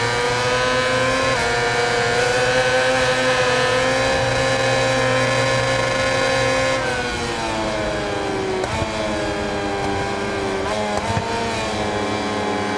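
A racing motorcycle engine screams at high speed, then drops in pitch as it slows for a corner.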